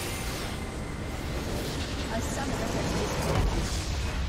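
Game spell effects crash and boom in a battle.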